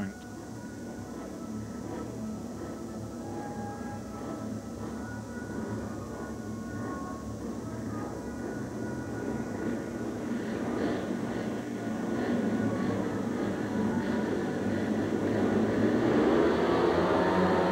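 Speedway motorcycle engines idle and rev, growing louder.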